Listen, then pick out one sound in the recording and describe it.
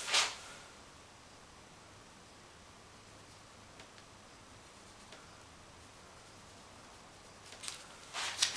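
Plastic film crinkles softly as a hand presses it onto wet paint.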